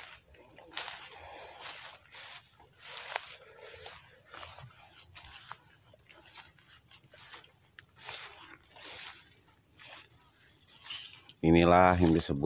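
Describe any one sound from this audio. Footsteps swish through tall grass and leaves.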